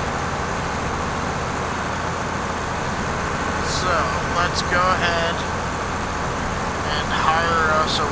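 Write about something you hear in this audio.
A combine harvester engine rumbles steadily.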